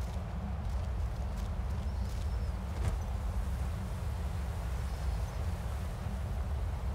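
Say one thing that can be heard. Wind howls steadily outdoors.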